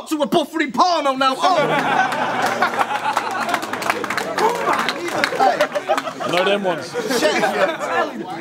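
A young man raps loudly and forcefully, close by.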